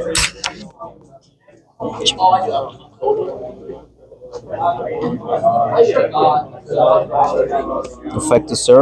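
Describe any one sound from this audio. Playing cards are shuffled and slapped onto a mat.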